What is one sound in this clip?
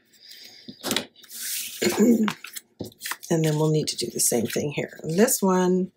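Paper slides and rustles against paper.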